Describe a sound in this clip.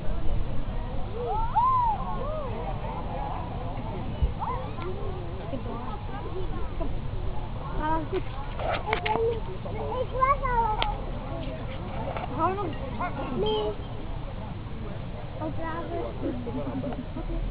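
A group of men and women chat and call out at a distance.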